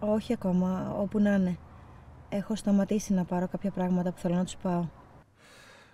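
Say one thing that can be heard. A woman talks calmly on a phone, heard close.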